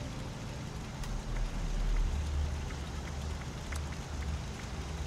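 Soft game menu clicks tick now and then.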